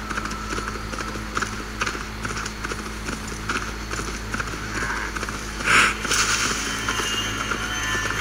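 A horse's hooves thud in a steady gallop.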